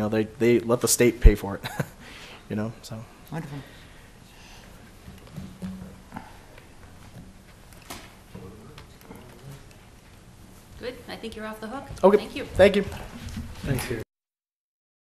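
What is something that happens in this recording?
A man speaks through a microphone in a slightly echoing room.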